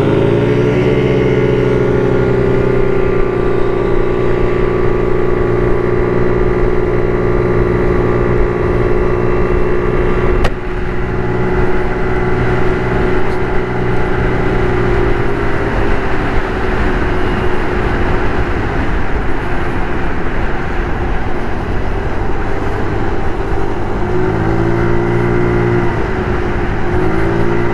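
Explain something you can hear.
A scooter engine hums steadily, rising and falling in pitch as the rider speeds up and slows down.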